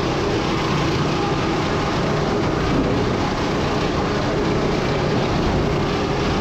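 Sawmill machinery rumbles and clanks steadily.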